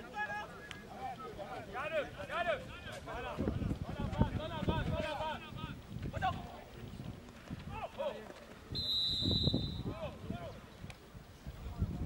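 Young men shout across an open pitch.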